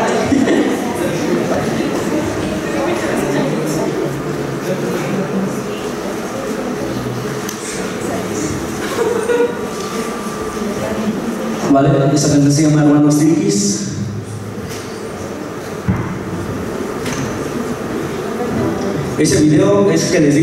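A man speaks into a microphone over loudspeakers, echoing in a large hall.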